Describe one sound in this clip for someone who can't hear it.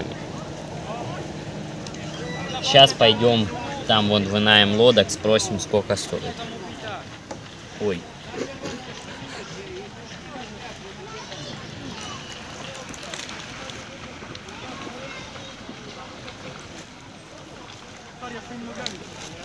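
Ducks paddle and splash softly in the water.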